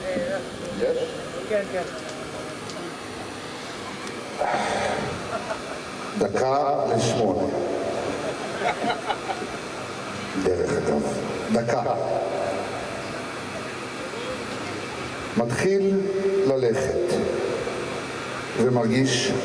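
A man speaks with animation into a microphone, heard over loudspeakers.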